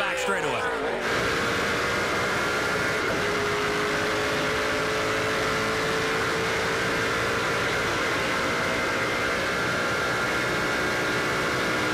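A race car engine drones loudly and steadily from close up inside the car.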